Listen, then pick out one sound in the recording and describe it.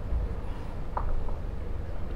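A lawn bowl knocks against another bowl.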